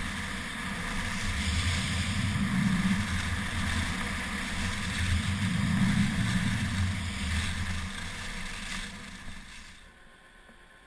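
Skis carve and scrape across packed snow.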